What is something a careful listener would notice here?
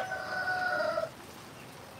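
A woman handles a metal pot with light clanks.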